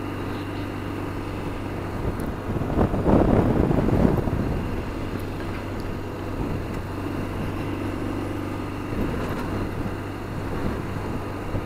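Wind rushes past in gusts.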